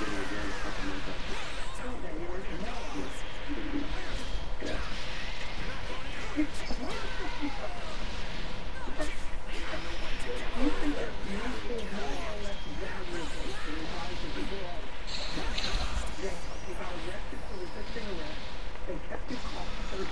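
Punches, kicks and energy blasts crack and boom in a fast video game fight.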